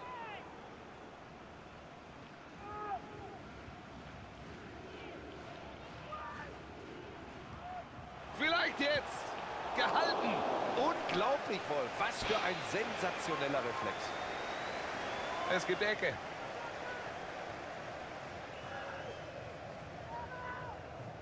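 A large stadium crowd murmurs and cheers, swelling loudly midway.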